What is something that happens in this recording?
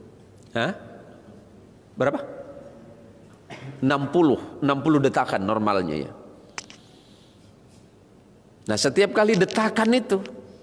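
A man speaks with animation into a microphone, in a slightly echoing room.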